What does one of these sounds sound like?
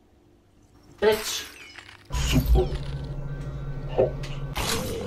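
A figure shatters loudly like breaking glass.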